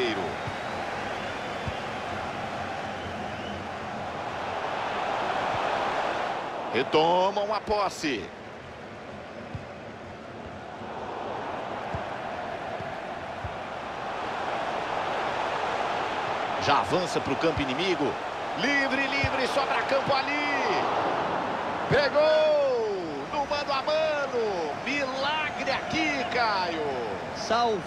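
A large stadium crowd roars and chants steadily, swelling at times.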